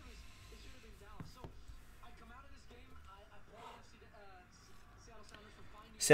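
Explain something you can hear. Cards slide and tap against each other.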